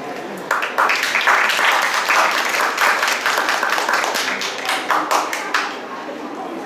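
An audience claps in applause.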